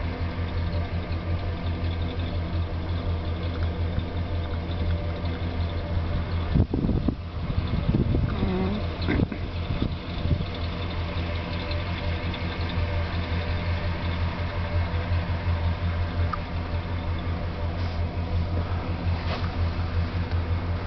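A van's engine idles with a steady low hum.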